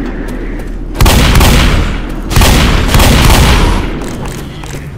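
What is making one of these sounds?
Shotgun blasts boom loudly in an echoing space.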